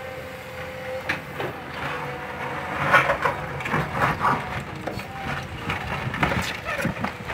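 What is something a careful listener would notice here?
Rocks and soil scrape and clatter under an excavator bucket.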